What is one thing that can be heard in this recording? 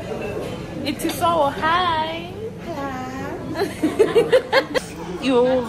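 An elderly woman talks and laughs nearby.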